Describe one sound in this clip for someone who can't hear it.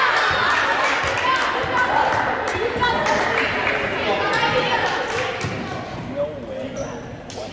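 Young women call out to each other during play.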